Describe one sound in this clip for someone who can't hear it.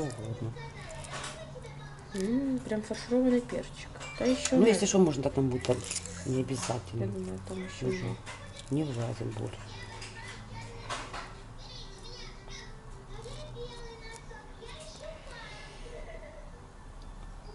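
A spoon scrapes and taps against a ceramic bowl.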